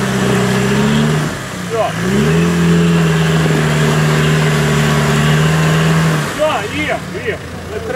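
Mud splashes under spinning tyres.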